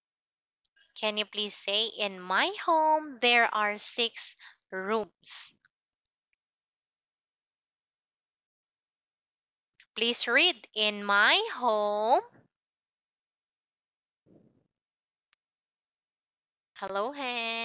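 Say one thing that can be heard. A young woman speaks clearly and with animation through an online call.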